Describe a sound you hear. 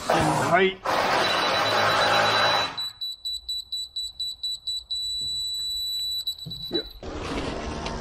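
A laser receiver beeps in quick, even pulses and then holds a steady high tone.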